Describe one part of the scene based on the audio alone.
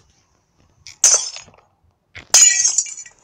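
Glass shatters with a sharp crash, twice.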